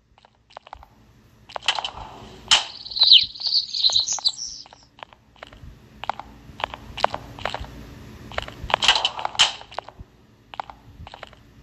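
A heavy hammer thuds on the ground.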